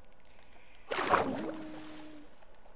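Water splashes as something plunges in.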